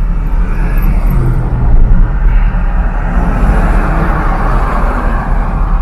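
A passing car rushes by close alongside.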